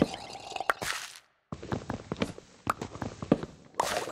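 Wooden blocks are chopped with dull knocking thuds.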